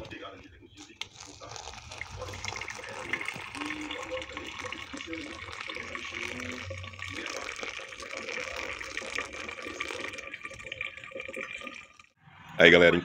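Hot water pours and splashes into coffee grounds.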